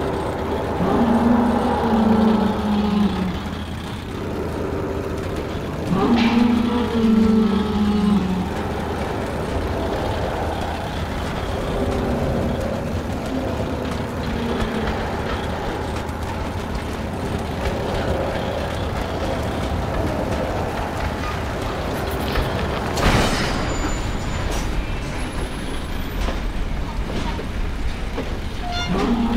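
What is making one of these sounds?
A rail cart rumbles steadily along a track.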